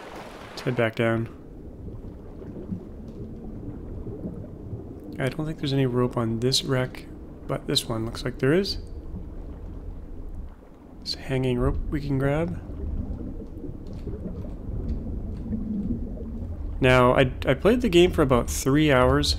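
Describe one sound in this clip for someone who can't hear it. Water rumbles in a low, muffled way underwater.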